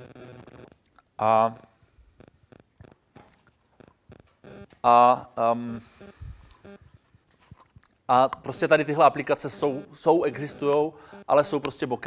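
A man speaks into a microphone, with long pauses.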